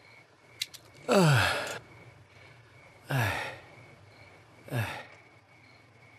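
A middle-aged man groans and sighs heavily nearby.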